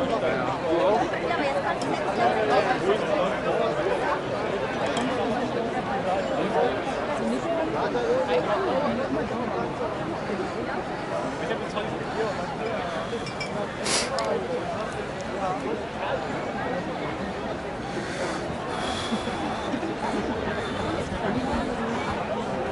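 A large crowd chatters outdoors all around.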